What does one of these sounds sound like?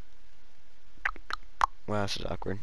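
Short menu clicks sound as the selection changes.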